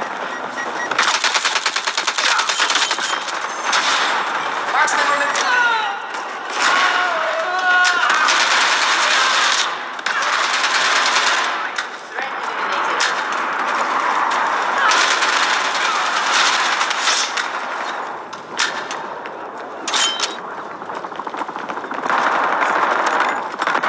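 A submachine gun fires.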